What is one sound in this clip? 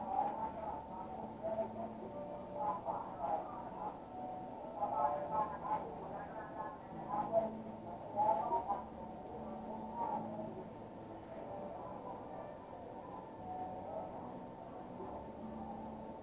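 A razor blade scrapes softly across hair at the nape of a neck.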